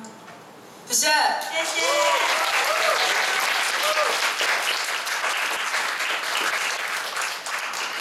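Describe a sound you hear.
An audience claps and cheers loudly.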